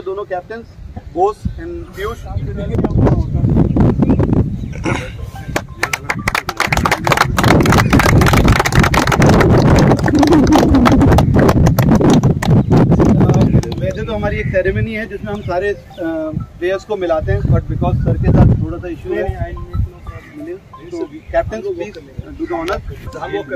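A man speaks calmly nearby outdoors.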